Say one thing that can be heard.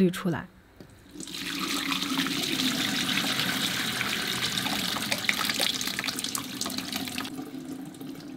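Liquid pours and splashes into a cloth-lined mould.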